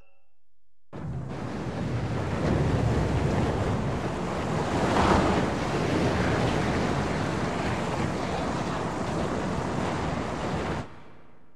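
Water rushes with a steady, noisy hiss.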